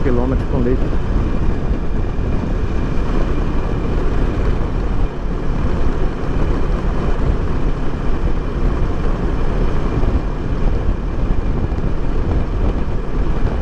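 Wind roars loudly against a helmet at high speed.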